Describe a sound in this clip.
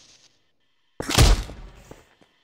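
A heavy thud sounds as someone lands on a hard floor.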